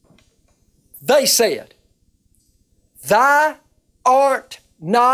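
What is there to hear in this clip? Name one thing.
An elderly man chants in a drawn-out, singing voice, with pauses between phrases.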